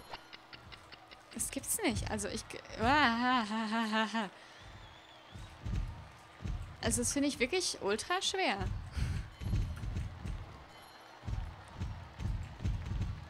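A horse gallops with rhythmic hoofbeats on soft ground.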